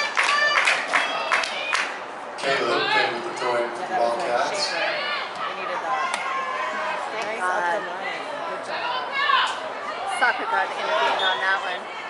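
Young women shout to each other across an open outdoor field.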